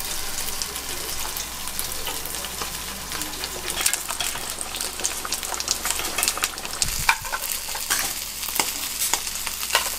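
Water boils and bubbles in a pan.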